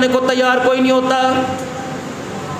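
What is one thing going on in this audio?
A man speaks with a drawn-out, chanting voice through a microphone in an echoing room.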